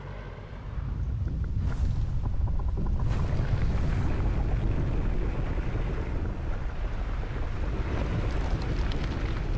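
A giant stone creature stomps heavily, with deep rumbling thuds.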